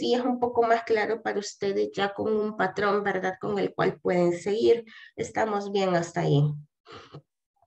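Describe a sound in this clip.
A woman speaks steadily over an online call.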